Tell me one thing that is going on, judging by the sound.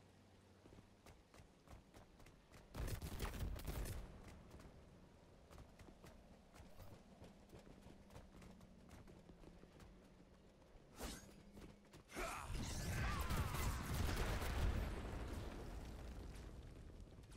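Footsteps thud quickly as a game character runs.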